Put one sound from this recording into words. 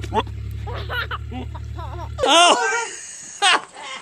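A baby giggles and squeals with delight.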